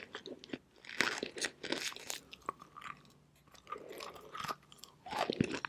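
A woman bites and crunches on brittle chalk up close.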